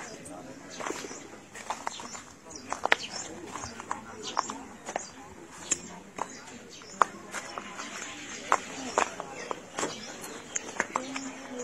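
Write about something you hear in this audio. Footsteps crunch over loose rubble and debris.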